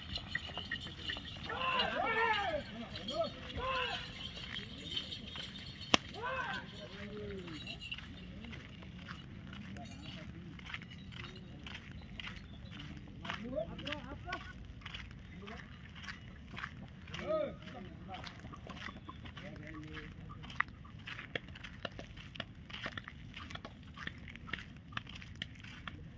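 Bulls drag a heavy stone block scraping over dirt.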